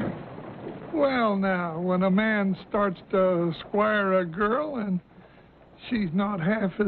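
An elderly man speaks up close in a lively, cheerful voice.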